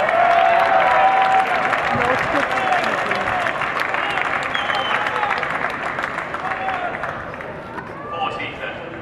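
A large crowd cheers and whistles, then fades.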